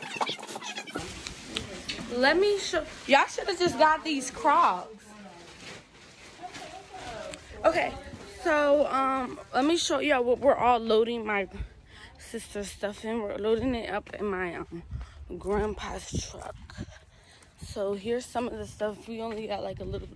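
A young woman talks close to the microphone with animation.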